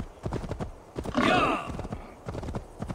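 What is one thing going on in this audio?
A horse whinnies briefly.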